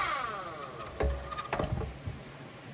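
A log knocks against the metal splitter bed.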